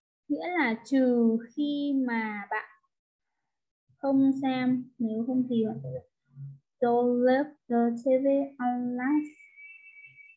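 A woman speaks calmly and clearly into a close microphone, explaining.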